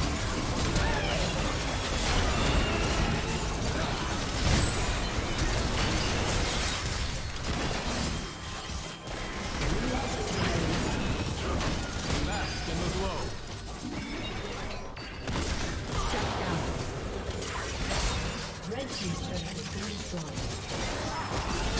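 Magic blasts and weapon clashes crackle and boom in a busy fight.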